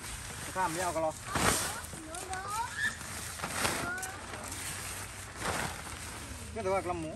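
Tent fabric rustles and flaps.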